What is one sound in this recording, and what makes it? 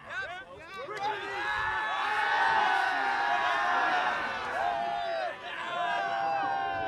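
A group of young men chant together in unison.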